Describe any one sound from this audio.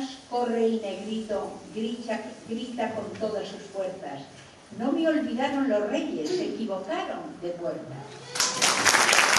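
An elderly woman reads out calmly through a microphone in an echoing hall.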